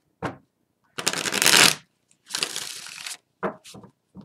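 A deck of playing cards is shuffled with a crisp riffle.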